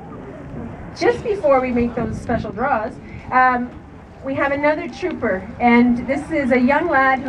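A woman speaks with animation into a microphone over a loudspeaker.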